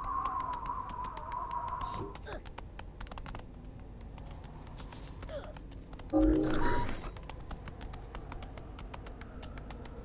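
Quick light footsteps patter across stone.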